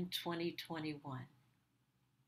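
An older woman speaks briefly over an online call.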